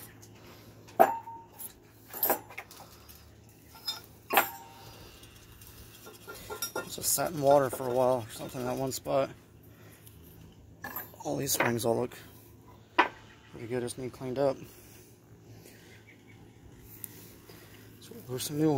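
Heavy rusty metal parts clank and knock together.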